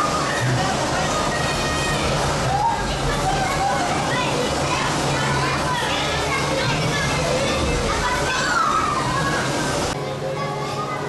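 A crowd of children chatters and calls out indoors.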